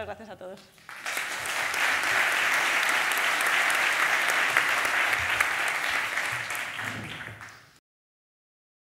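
A large audience applauds in a big echoing hall.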